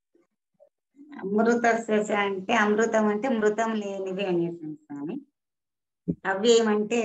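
A woman sings through an online call.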